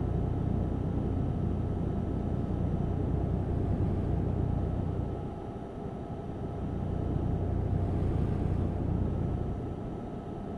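A truck's diesel engine rumbles steadily, dipping briefly and then rising again.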